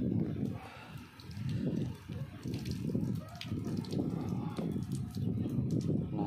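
Water pours and splashes onto a plastic surface.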